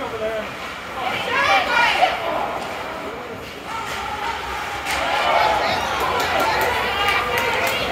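Young male players shout across the ice.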